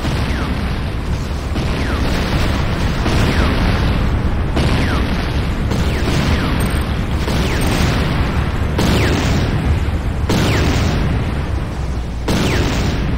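Electricity crackles and buzzes continuously.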